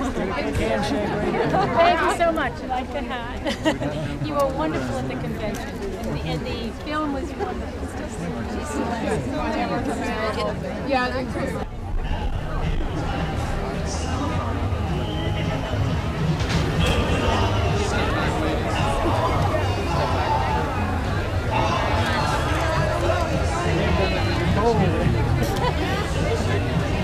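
A crowd of men and women chat and laugh all around, outdoors.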